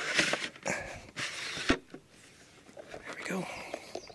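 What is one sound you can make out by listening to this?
A plastic board knocks and rattles.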